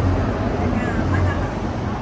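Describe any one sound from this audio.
A motorbike rides past on the street.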